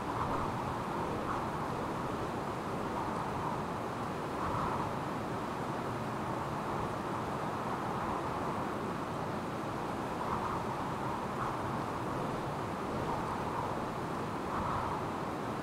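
Train wheels clack over rail joints at uneven intervals.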